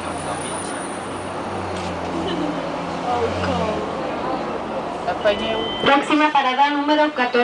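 City traffic rumbles around.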